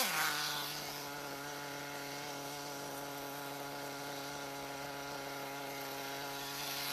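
A small model car engine buzzes loudly and steadily.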